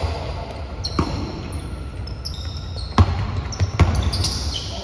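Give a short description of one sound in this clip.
A basketball bounces with echoing thuds.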